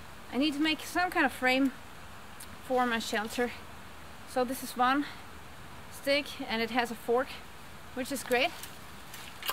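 A young woman talks calmly nearby outdoors.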